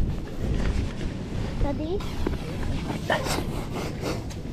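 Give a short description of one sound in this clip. Wet sand squelches as a tube pulls out of the ground.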